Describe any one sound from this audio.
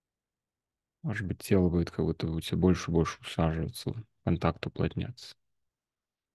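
A man speaks calmly over an online call.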